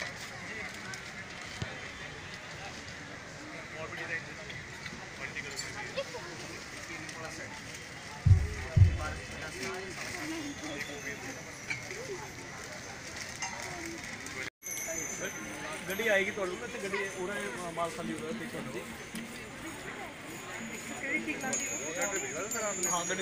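A busy crowd murmurs outdoors.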